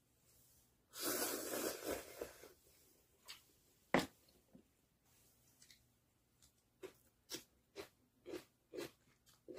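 A woman slurps noodles loudly, close up.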